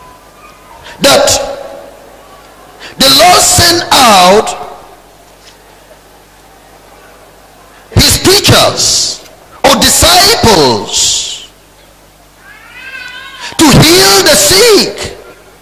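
A man preaches loudly and with passion through a microphone, in bursts with pauses.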